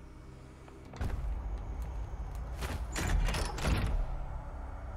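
A heavy metal vault door grinds and rumbles open.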